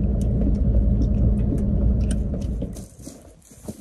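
A vehicle engine rumbles loudly.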